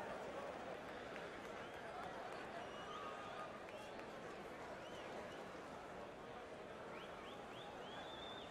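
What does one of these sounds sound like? A crowd roars steadily in a large echoing arena.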